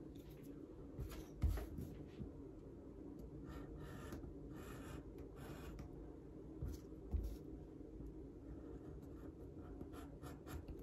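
A metal tool scrapes and taps on leather.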